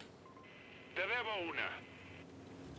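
A young man speaks briefly and with animation into a close microphone.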